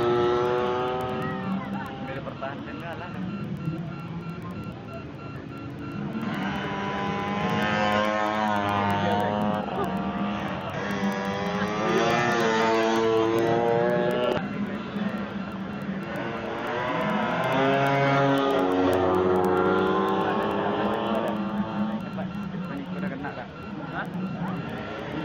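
Two-stroke Vespa scooter engines scream at full throttle as they race past.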